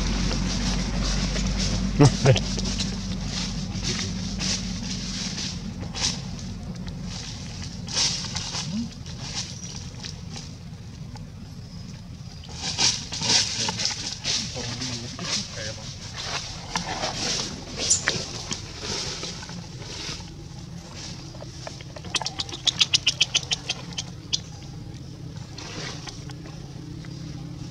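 Dry leaves rustle and crunch under a monkey's footsteps.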